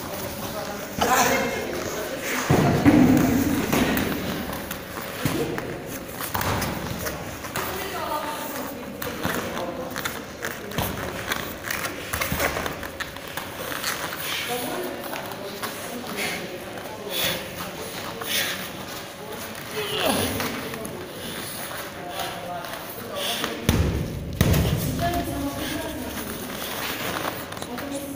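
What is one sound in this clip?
Bodies thump and scuffle on a padded mat.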